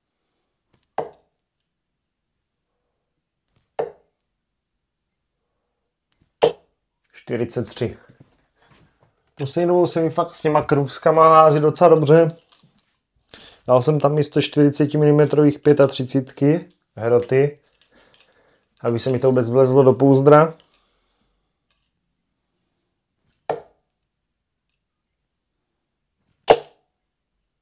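Darts thud into a dartboard one at a time.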